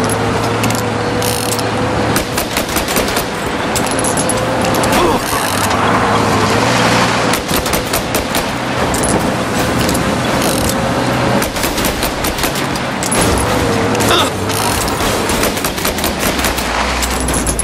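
An old car engine roars steadily at speed.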